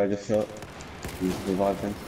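Rapid gunfire rings out from an assault rifle.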